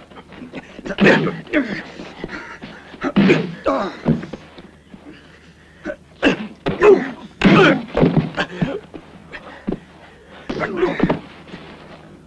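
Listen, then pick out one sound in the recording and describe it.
Fists land hard, smacking blows in a fistfight.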